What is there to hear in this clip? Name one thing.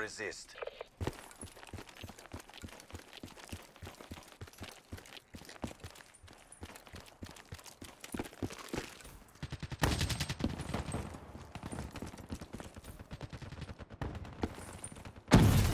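Quick footsteps crunch over snow and hard ground.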